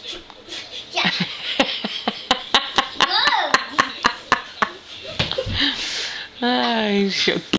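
A young child squeals and babbles excitedly nearby.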